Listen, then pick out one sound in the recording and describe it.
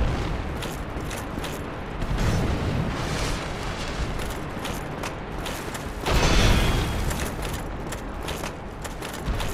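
Armour clanks.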